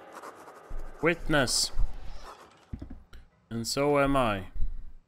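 A young man speaks excitedly into a close microphone.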